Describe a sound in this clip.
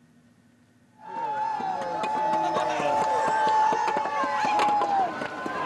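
Heavy blocks clatter as they topple in a row.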